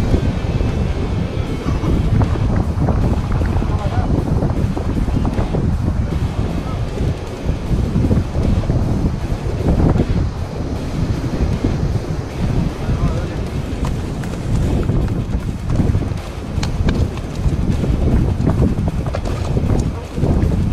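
Waves crash and surge against rocks nearby.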